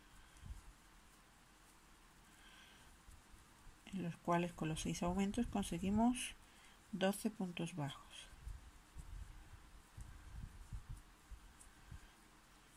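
A crochet hook pulls yarn with soft, faint rustles.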